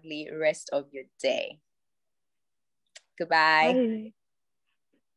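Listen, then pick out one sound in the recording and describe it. A young woman speaks warmly over an online call.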